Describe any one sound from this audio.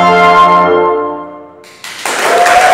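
A brass ensemble plays a held final chord that fades out, in a reverberant hall.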